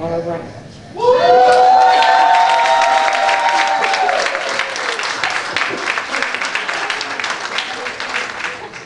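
A crowd claps their hands.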